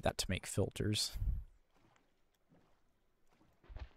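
A small boat splashes and paddles through water.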